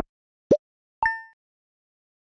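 A bright chime rings once.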